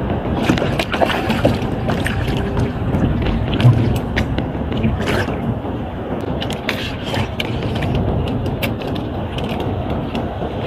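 Equipment clicks and knocks close by.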